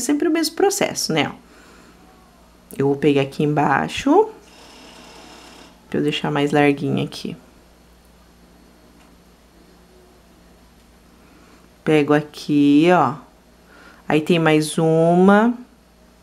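A crochet hook softly rasps against yarn.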